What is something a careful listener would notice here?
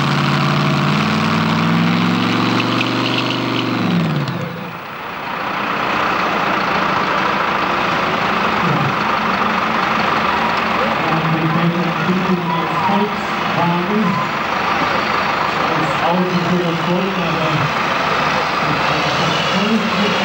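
A large outdoor crowd murmurs and chatters.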